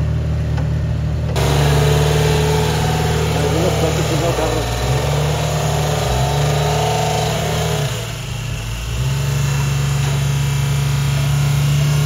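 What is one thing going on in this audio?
The engine of a rock crawler buggy revs under load as it climbs a steep rock wall.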